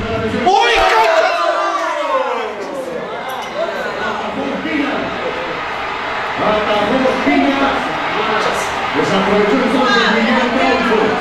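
A group of men and women shout and chatter excitedly.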